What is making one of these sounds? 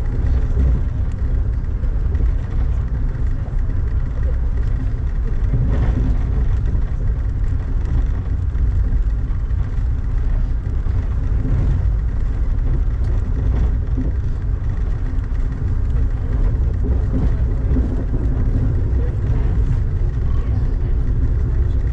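Rain patters on a window pane.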